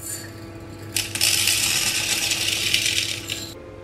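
Dry grains pour and patter into a metal pot.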